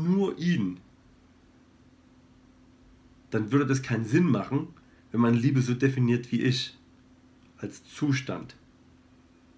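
A man speaks calmly and close up, in short bursts with pauses.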